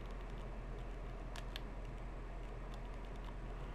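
Soft menu clicks tick as a selection moves.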